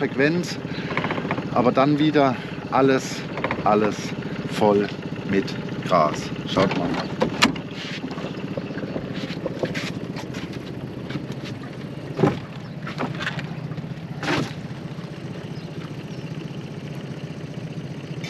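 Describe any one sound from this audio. An outboard motor hums steadily as a boat moves across water.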